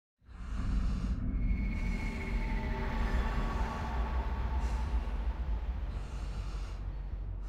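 Heavy footsteps thud across wooden floorboards.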